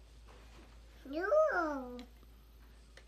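A toddler squeals in a high, sing-song voice close by.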